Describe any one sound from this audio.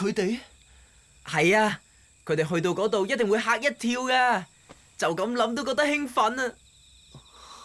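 A boy speaks with animation.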